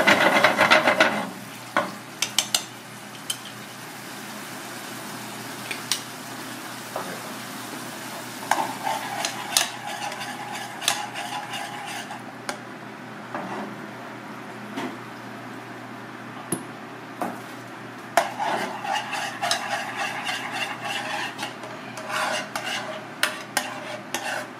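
A wooden spoon scrapes and clicks against a pan.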